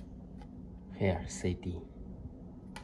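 A disc clatters as it is handled.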